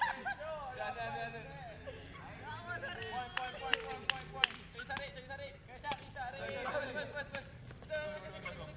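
Young people call out to each other outdoors.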